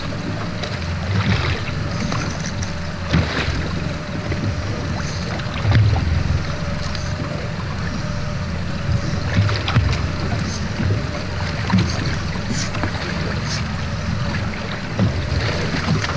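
Wind buffets against the microphone over open water.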